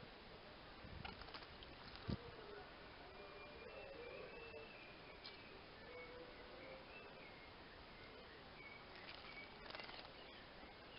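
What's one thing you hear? A small bird splashes about in shallow water.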